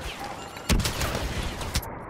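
A fire roars and crackles from a grenade explosion.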